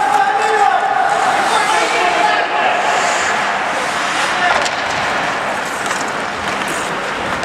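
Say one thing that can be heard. Skates scrape and hiss on ice in a large echoing hall.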